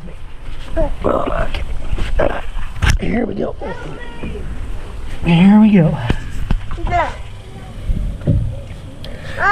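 A man talks gently and encouragingly close by.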